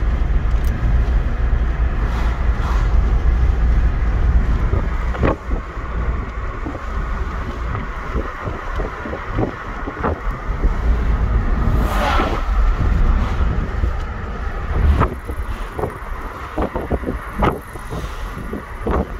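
Wind rushes and buffets loudly past an open car window.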